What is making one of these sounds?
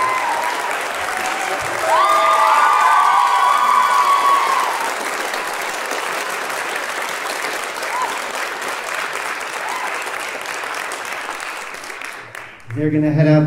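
A large audience applauds in a big echoing hall.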